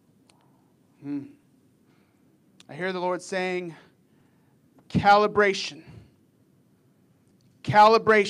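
A man speaks slowly and earnestly into a microphone, in short phrases with pauses.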